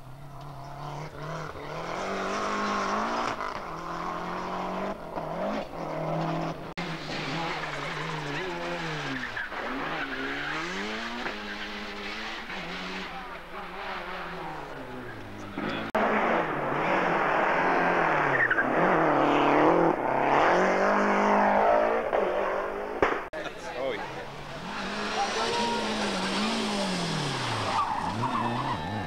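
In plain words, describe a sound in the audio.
A racing car engine revs hard, rising and falling in pitch as it shifts gears.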